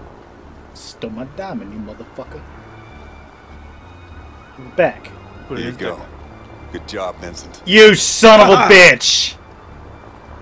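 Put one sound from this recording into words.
A middle-aged man speaks tensely and close by.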